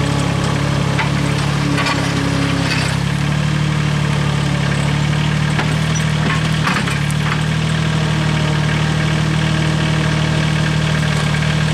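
A skid steer loader's diesel engine runs loudly and steadily close by.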